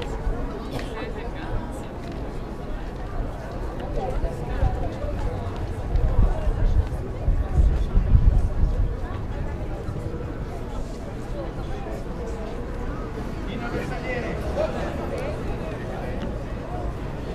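A crowd of people chatters at a distance.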